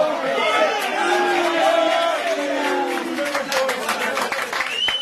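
A group of young men cheer and sing loudly nearby.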